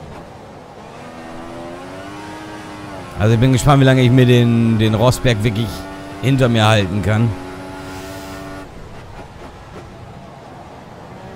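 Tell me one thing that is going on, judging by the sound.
A racing car engine revs high and climbs in pitch through gear changes.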